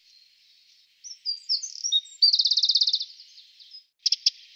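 A small bird sings a trilling song.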